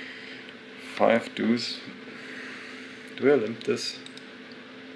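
A young man speaks briefly and casually into a microphone.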